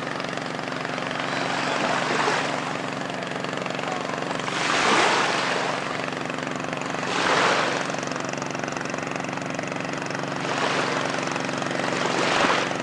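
Small waves wash gently onto the shore in slow surges.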